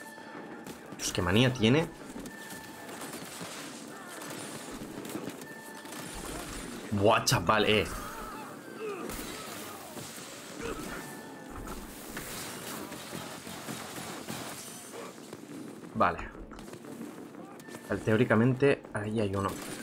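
Gunshots and blasts go off in a fight, with loud bursts now and then.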